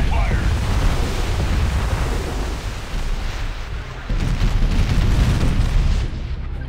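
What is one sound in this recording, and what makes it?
Explosions boom and rumble in a battle game.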